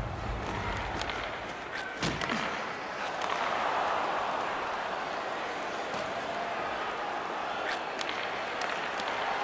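Hockey sticks click sharply against a puck.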